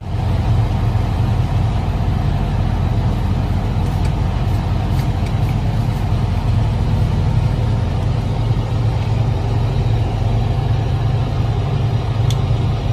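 A ship's engine drones low and steady.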